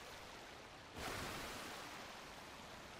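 A big wave splashes and crashes over a boat.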